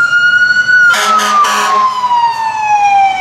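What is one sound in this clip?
A fire truck blasts its air horn up close.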